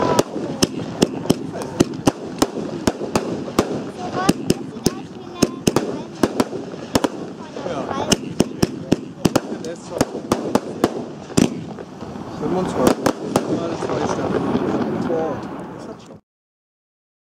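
Firework sparks fizz and crackle after each burst.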